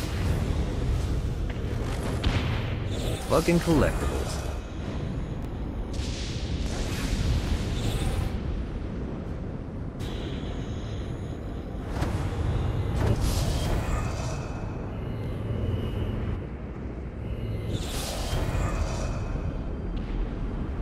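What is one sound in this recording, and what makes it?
Wind rushes steadily past during a glide through the air.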